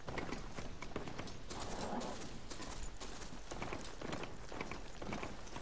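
Heavy mechanical footsteps thud rhythmically over dry, rocky ground.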